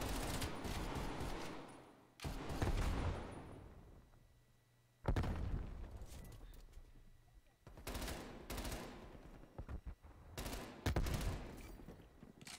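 Rapid gunfire bursts crack loudly.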